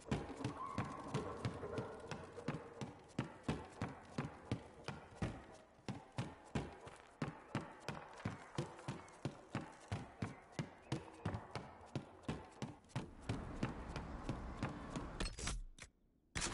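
Footsteps thud quickly on wooden boards and stone.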